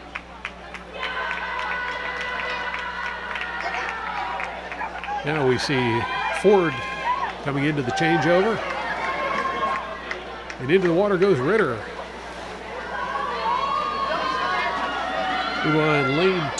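A crowd of young people cheers and shouts in an echoing hall.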